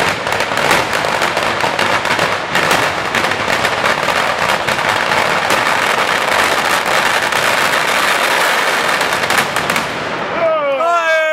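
Fireworks crackle and hiss loudly outdoors.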